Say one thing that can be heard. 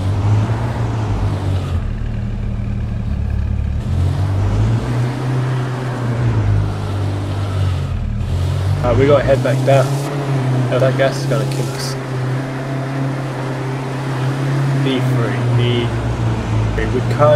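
A vehicle engine hums steadily as it drives along.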